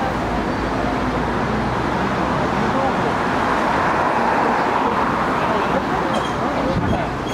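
Street traffic hums steadily in the background.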